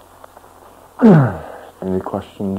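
A man sighs with a falling voice close to a microphone.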